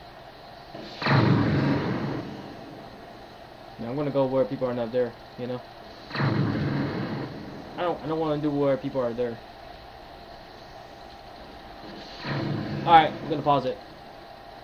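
A game's energy blast whooshes and roars in short bursts.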